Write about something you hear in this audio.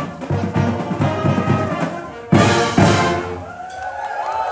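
A brass band plays loudly, then stops.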